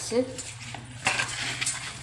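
A hand squishes and mixes raw meat in a plastic bowl.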